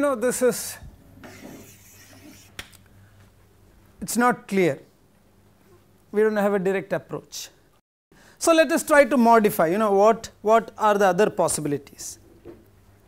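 A man lectures calmly through a clip-on microphone, in short bursts with pauses.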